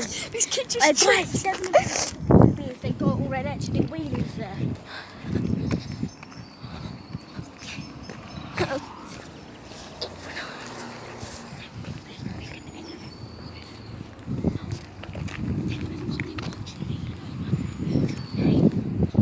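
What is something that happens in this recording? A young boy talks close to the microphone with animation.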